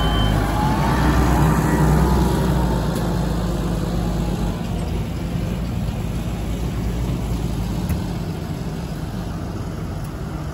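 A tractor engine rumbles steadily close by, then slowly fades.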